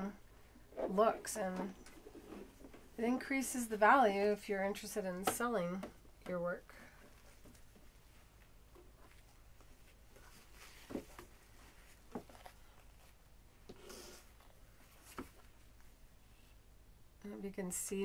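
Fabric rustles and shifts as hands move it.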